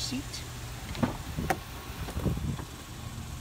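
A hand pats a car's door frame.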